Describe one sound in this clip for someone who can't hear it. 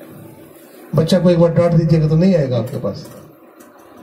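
An elderly man speaks through a microphone and loudspeaker.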